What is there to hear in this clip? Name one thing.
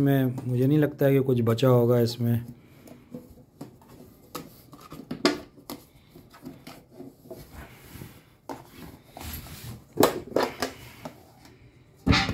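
A metal tin scrapes and knocks as it is handled.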